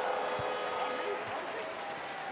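A basketball bounces on the court with dull thuds.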